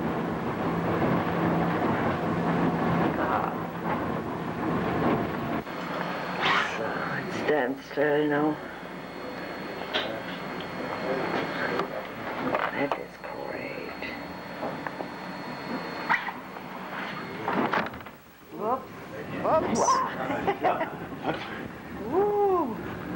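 A train rumbles and clatters along its track.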